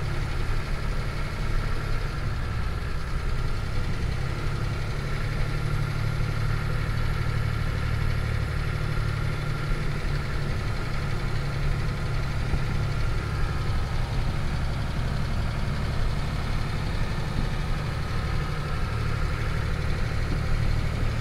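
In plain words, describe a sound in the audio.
Tyres roll on a wet road.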